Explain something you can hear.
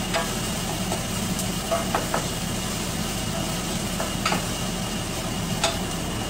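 A utensil clinks against a metal pot.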